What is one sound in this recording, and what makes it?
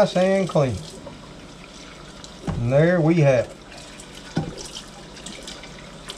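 A sponge scrubs against a pan.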